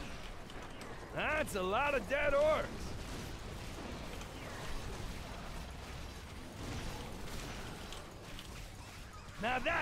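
Weapons strike enemies with sharp hits.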